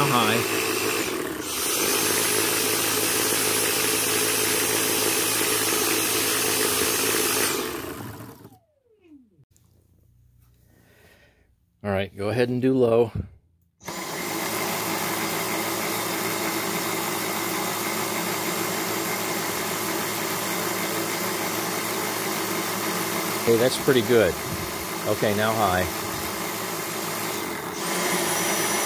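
A vacuum cleaner motor whirs loudly and steadily.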